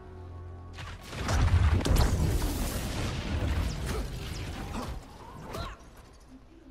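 A loud crackling burst of lightning roars and fades.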